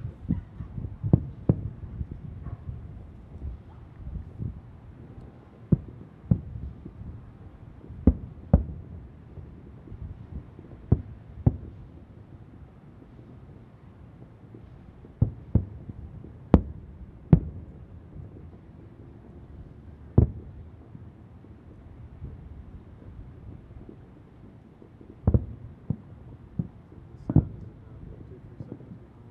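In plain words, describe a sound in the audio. Distant fireworks boom and crackle, echoing across the night.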